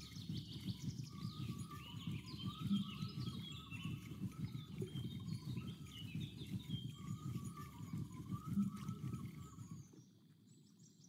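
A fishing reel whirs and clicks as it winds in line.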